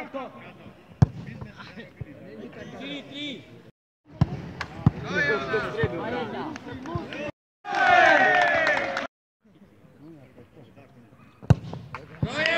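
A foot kicks a ball with a sharp thud.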